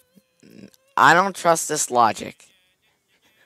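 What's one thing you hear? A young man with a headset talks loudly into a microphone.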